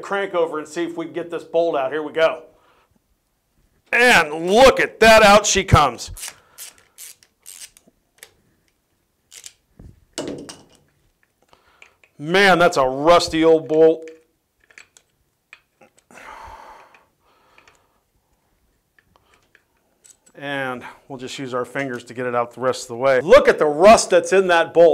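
A middle-aged man speaks calmly and clearly, close to a microphone.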